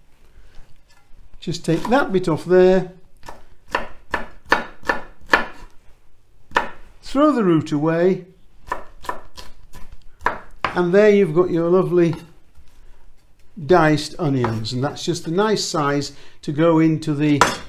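A knife chops onion on a wooden board with quick taps.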